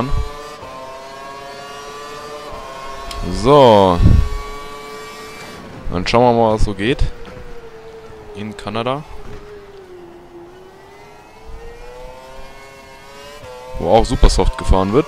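A racing car engine whines steadily at high revs.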